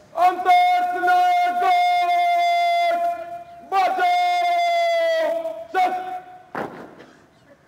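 A man loudly shouts a long, drawn-out parade command.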